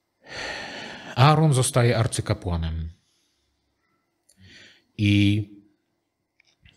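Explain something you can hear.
A middle-aged man reads aloud calmly into a microphone.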